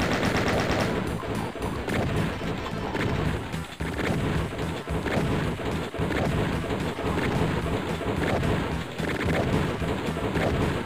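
Single gunshots ring out every second or two.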